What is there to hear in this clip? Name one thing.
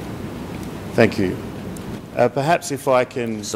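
An older man speaks steadily into a microphone.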